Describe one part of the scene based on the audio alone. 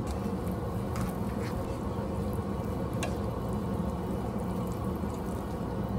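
A spatula scrapes and stirs pasta in a pan.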